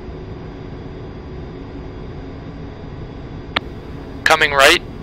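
A jet engine drones with a steady, low roar.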